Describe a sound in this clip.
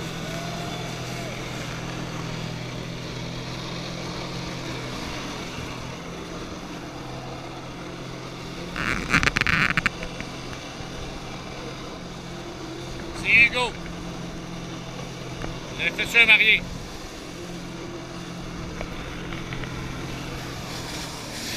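A watercraft engine drones steadily nearby.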